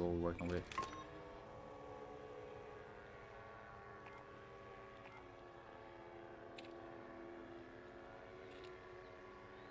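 A drone engine hums steadily overhead.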